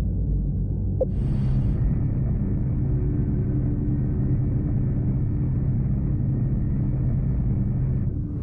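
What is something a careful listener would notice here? Spaceship engines rumble steadily and deeply.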